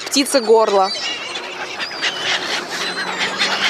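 Swans and gulls call noisily outdoors.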